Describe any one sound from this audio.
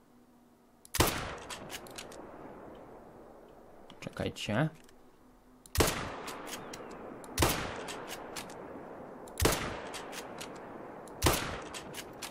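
A rifle fires loud single shots that ring out and echo.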